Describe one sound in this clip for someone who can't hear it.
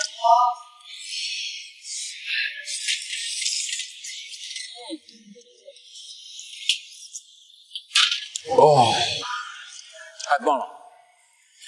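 Oyster shells clatter against a metal tray.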